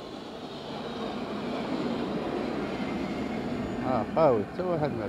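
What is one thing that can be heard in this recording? A tram rolls past close by with a low, steady rumble.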